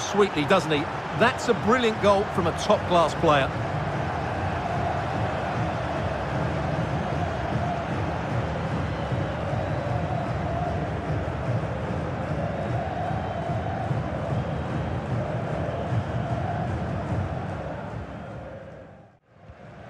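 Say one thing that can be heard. A large stadium crowd roars and chants steadily, then fades away.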